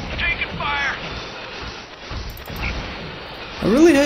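Gunfire rattles in a battle.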